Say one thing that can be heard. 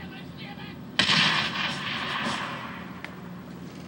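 A video game explosion booms and rumbles away through a television speaker.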